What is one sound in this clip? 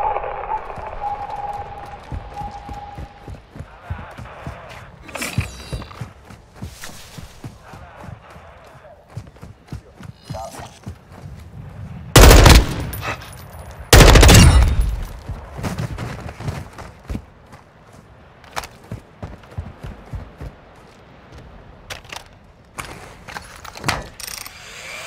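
Footsteps crunch over gravel and rubble.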